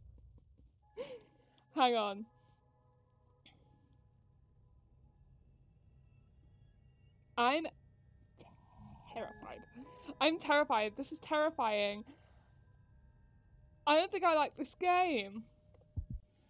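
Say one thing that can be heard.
A young woman talks and laughs close to a microphone, with animation.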